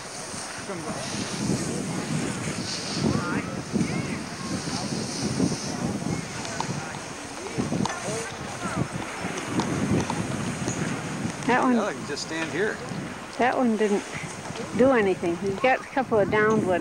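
Snowboards scrape and hiss over packed snow.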